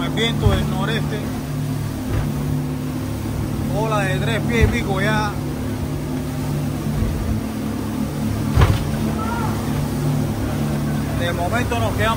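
Water rushes and splashes against a speeding boat's hull.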